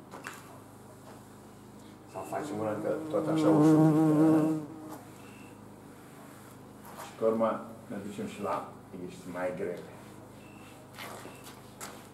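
A cloth rubs across a chalkboard.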